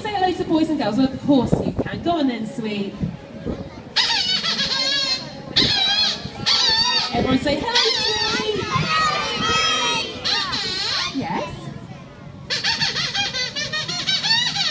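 A young woman sings into a microphone, heard through loudspeakers.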